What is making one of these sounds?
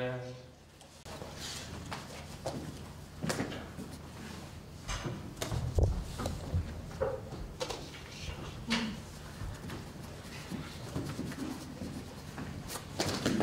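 Paper cutouts rustle and tap as they are moved about.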